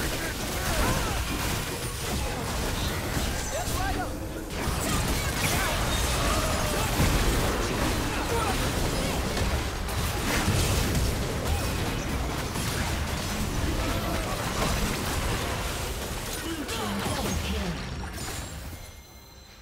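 Magic blasts and weapon hits crackle and boom in a busy video game fight.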